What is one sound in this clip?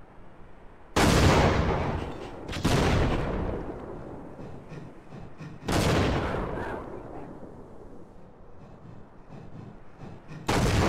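Loud explosions boom and rumble away.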